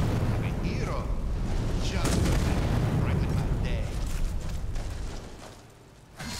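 Magic crackles and roars loudly.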